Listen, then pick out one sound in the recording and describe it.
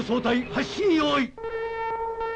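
A man speaks up loudly and with animation.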